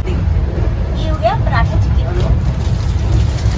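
A young woman laughs and talks close by.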